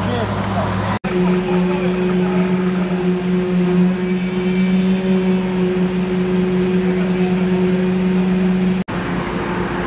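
A concrete mixer truck's engine rumbles steadily nearby.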